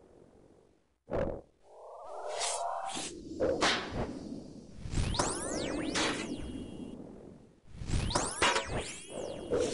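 Heavy thuds of blows land in a fight.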